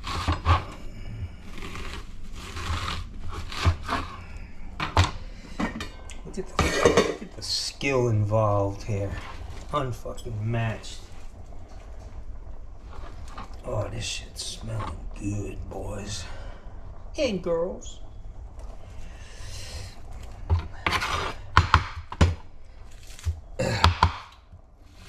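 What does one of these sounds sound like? A knife chops through an onion on a cutting board with sharp knocks.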